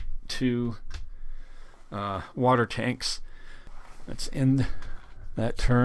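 Small plastic game pieces click down onto a board.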